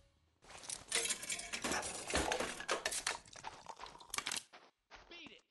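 A vending machine clunks and rattles as a can drops.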